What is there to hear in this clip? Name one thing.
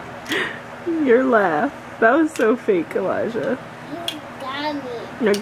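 A toddler babbles and vocalizes nearby.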